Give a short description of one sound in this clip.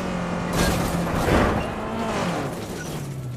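Metal scrapes and crashes.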